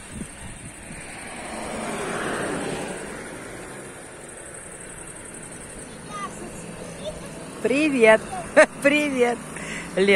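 A motor scooter hums as it approaches and draws up close.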